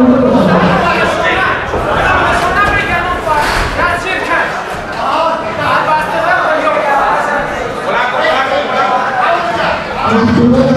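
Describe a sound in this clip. A crowd of men shout and cheer loudly in an echoing room.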